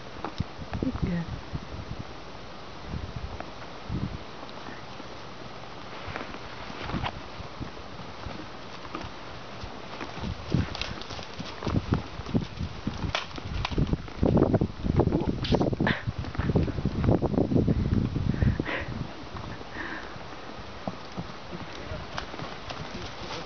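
A horse trots with soft, dull hoofbeats on dirt.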